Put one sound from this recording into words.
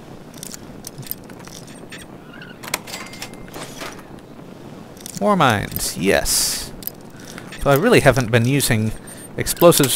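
A lock pick scrapes and clicks inside a metal lock.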